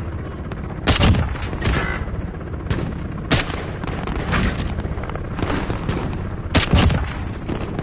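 Loud rifle shots crack one at a time.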